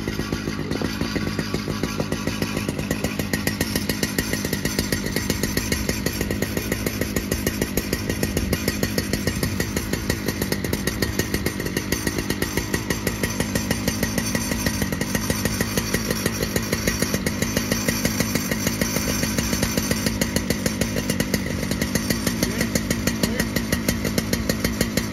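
A chainsaw engine roars steadily close by.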